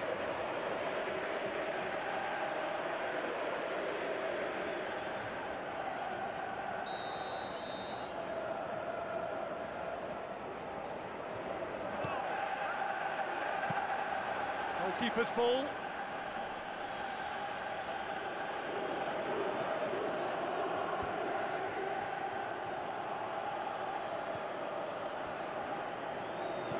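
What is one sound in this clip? A large crowd cheers and chants steadily in a stadium.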